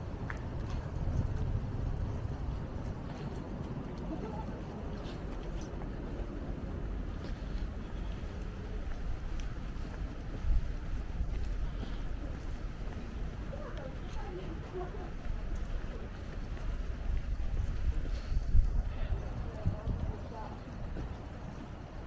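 Footsteps splash on a wet pavement.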